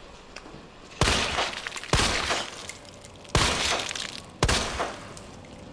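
A handgun fires several shots.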